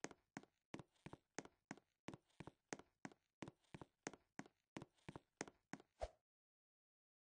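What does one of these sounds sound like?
A character splashes through water in quick, regular strokes.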